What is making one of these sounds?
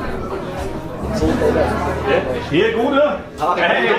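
An accordion plays a lively tune.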